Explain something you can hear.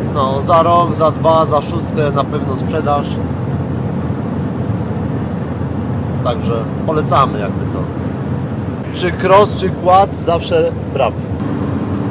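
A middle-aged man talks with animation close by.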